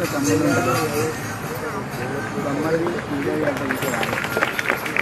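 A young woman sings through a loudspeaker outdoors.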